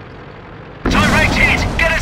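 A shell explodes with a loud boom.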